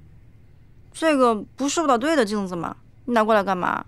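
A young woman asks questions with surprise.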